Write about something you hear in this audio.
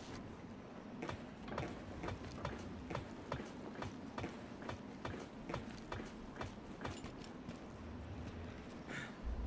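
Boots clank on metal steps and ladder rungs.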